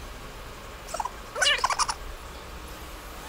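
A young man laughs briefly close by.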